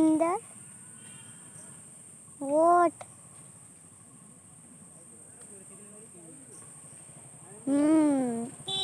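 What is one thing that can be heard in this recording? A leaf whistle blown by a young woman gives short, bending squeaky hoots.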